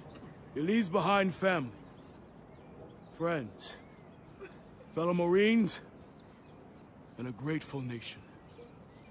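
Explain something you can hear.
A man speaks solemnly in short, slow phrases with pauses between them.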